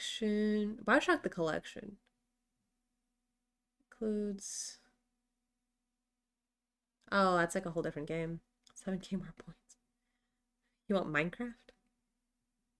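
A young woman speaks with animation close to a microphone, in short bursts with pauses.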